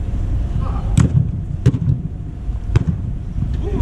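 A football is kicked hard in a large echoing dome.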